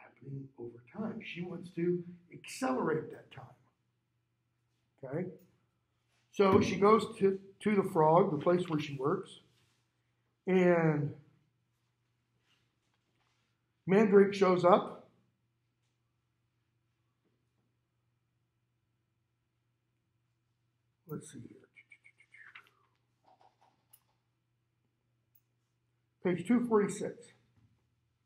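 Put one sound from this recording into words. A man speaks calmly into a clip-on microphone, with pauses.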